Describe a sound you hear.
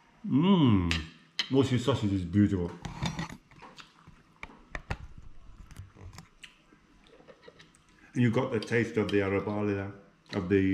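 A knife and fork clink and scrape on a plate.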